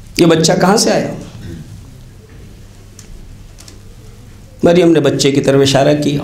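A man speaks with emphasis into a microphone.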